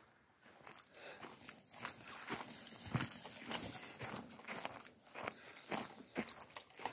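Footsteps thud quickly on a dirt trail.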